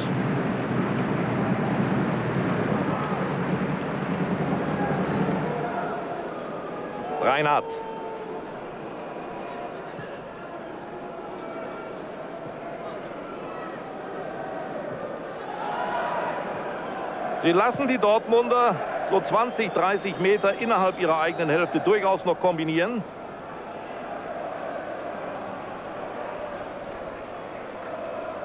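A large stadium crowd roars and murmurs, louder at first and then settling.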